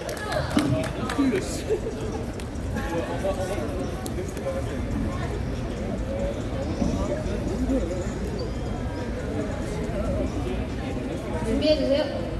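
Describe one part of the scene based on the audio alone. Pop music plays loudly from a portable speaker.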